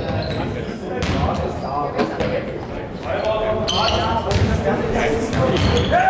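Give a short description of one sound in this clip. Players' shoes squeak on a hard floor in a large echoing hall.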